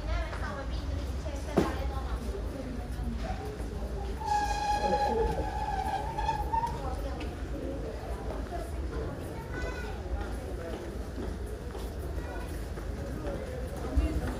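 Men and women talk faintly nearby as they walk past.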